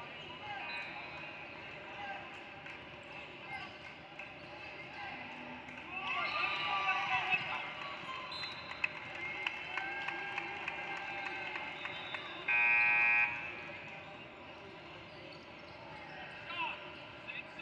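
Spectators murmur and call out in a large echoing gym.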